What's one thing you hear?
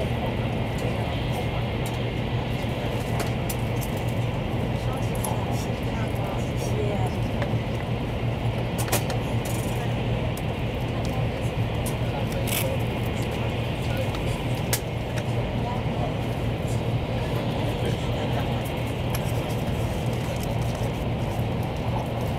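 Air rushes steadily past a train's windows.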